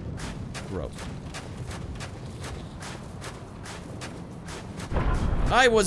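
Footsteps crunch quickly over snow.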